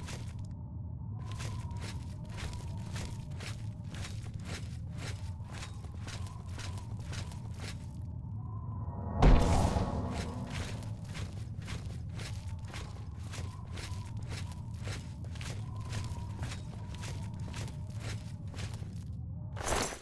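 Footsteps crunch steadily on a stone floor in an echoing cave.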